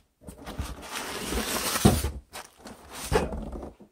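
Plastic wrap and cardboard rustle as a hand rummages in a box.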